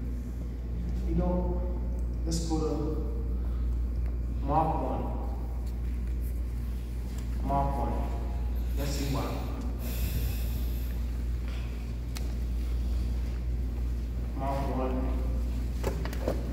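A man speaks with feeling into a microphone, heard through loudspeakers in an echoing hall.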